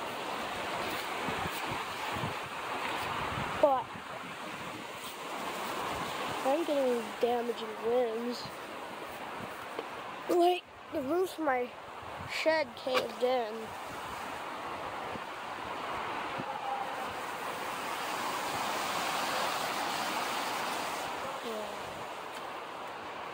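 Strong wind gusts roar outdoors.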